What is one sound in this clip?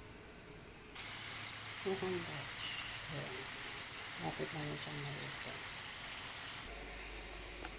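Hot oil sizzles and bubbles as food deep-fries in a pan.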